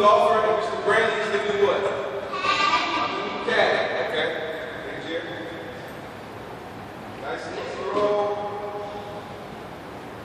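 Children talk and call out in a large echoing hall.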